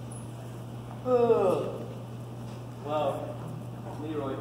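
A young man speaks loudly in a large echoing hall.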